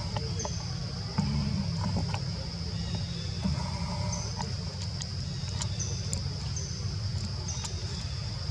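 A small monkey's feet patter softly on a roof.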